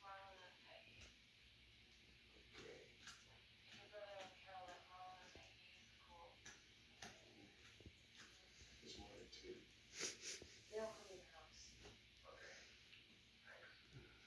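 A dog sniffs in short bursts.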